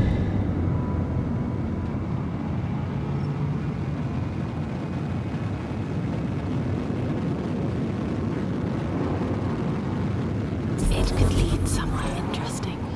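A spaceship engine hums with a low, steady rumble.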